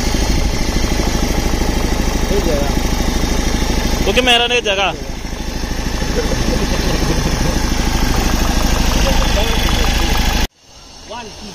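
A diesel engine idles with a loud, steady rumble.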